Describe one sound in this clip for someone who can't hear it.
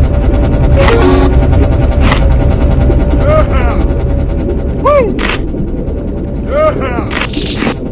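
A cartoon shark chomps with sharp, crunchy bites.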